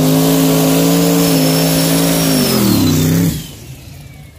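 Tyres squeal sharply as they spin on the pavement.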